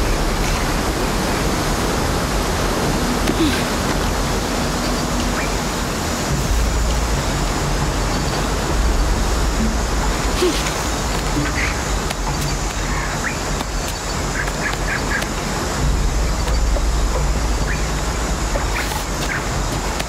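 Water rushes steadily nearby.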